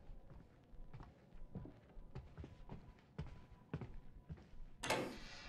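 Footsteps thud at a steady pace on a hard floor.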